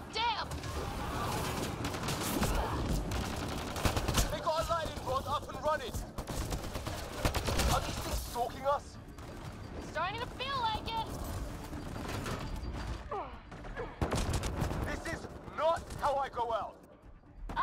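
Gunfire crackles and booms in bursts.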